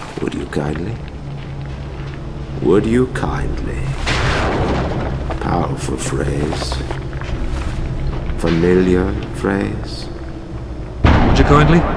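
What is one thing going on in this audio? A middle-aged man speaks to the listener.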